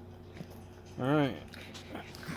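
A small dog whines in short high cries close by.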